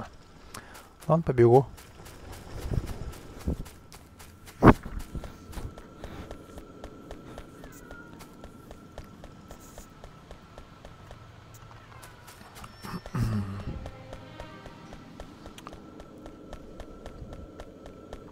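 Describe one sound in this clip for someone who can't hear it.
Footsteps patter quickly and steadily on hard ground.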